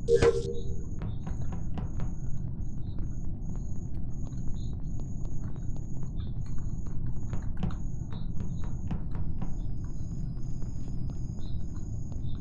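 Quick soft footsteps patter steadily.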